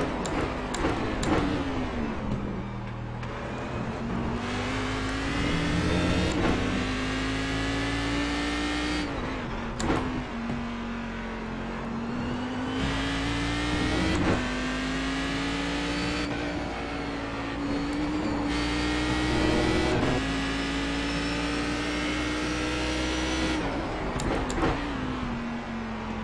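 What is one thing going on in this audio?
A racing car engine roars, revving up and down through gear changes.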